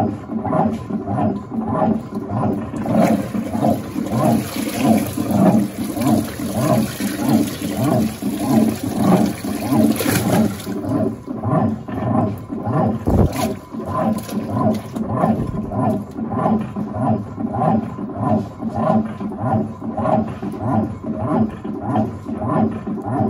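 Water sloshes and splashes around clothes in a washing machine.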